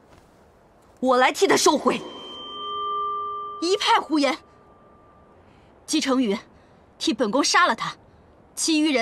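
A young woman speaks firmly and coldly.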